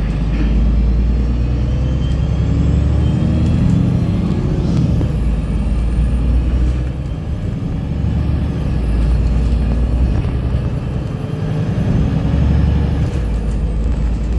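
A vehicle's engine hums steadily, with a low rumble that rises and falls as it drives.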